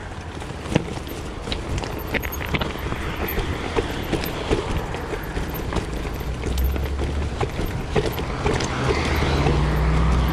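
Bicycle tyres rattle and clatter over rough stones.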